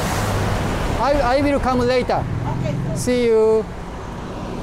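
A woman speaks nearby in a conversational tone.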